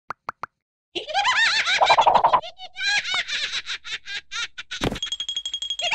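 A squeaky, high-pitched cartoon voice laughs hysterically.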